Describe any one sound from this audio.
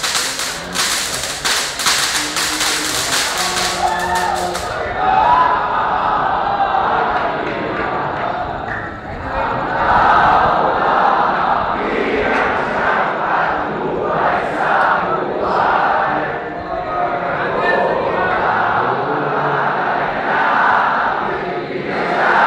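A large crowd sings along together, loud and echoing.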